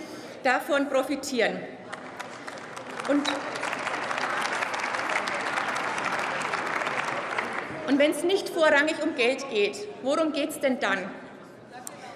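A woman speaks firmly into a microphone in a large hall.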